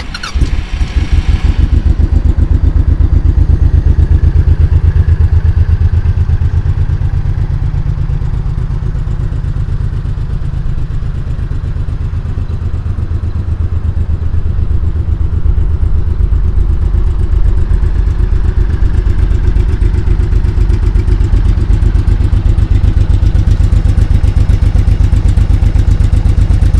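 A motorcycle engine idles close by with a deep, steady, throbbing rumble.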